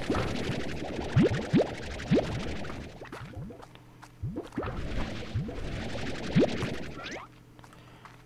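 A game vacuum gun whooshes with suction.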